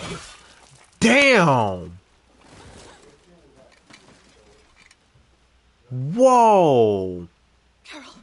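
A man cries out loudly in pain.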